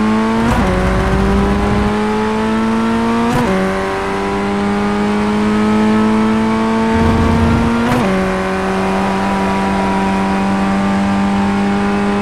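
A race car engine whines at high revs, climbing steadily and dropping briefly with each gear change.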